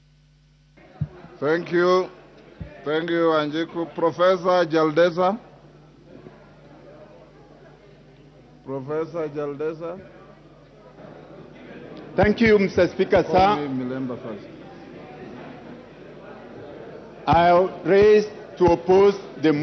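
A man speaks firmly into a microphone in a large echoing hall.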